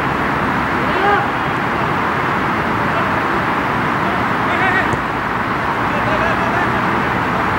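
Men shout short calls across an open field, heard from a distance.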